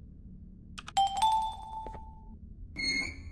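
A bright electronic chime rings.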